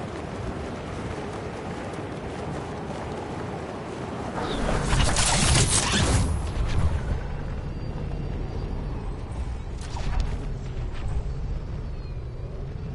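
Wind rushes steadily past a falling figure.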